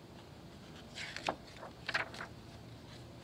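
A book's pages rustle as they turn.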